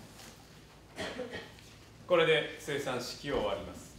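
A man speaks calmly through a microphone in an echoing room.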